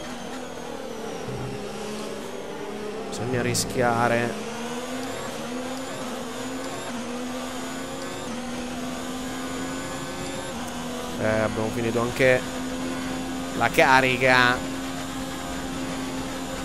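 A racing car engine whines at high revs and shifts up through the gears.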